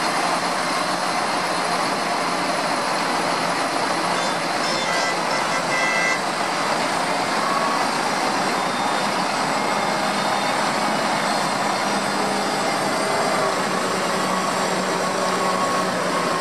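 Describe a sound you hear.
Tractor tyres swish over a wet road.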